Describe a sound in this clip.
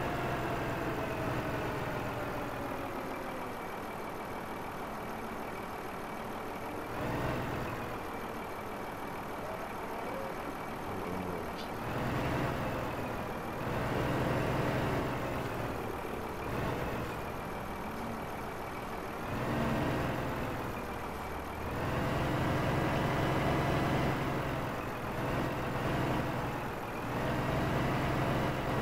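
A heavy truck engine rumbles and revs up and down.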